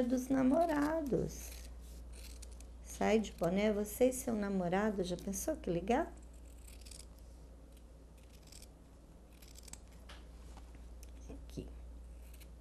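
Scissors snip through fabric.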